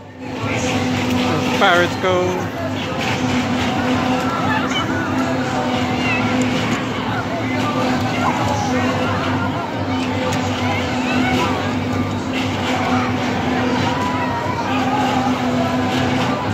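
Riders chatter and shout on a spinning ride.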